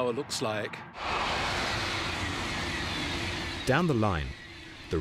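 A high-speed train rushes past.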